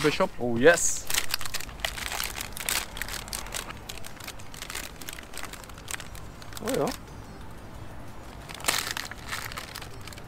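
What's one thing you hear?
A snack wrapper crinkles.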